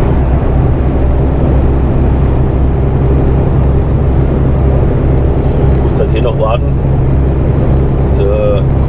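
A vehicle's engine hums steadily and tyres roll on a road while driving.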